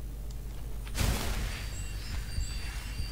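A magic spell bursts to life with a loud whoosh.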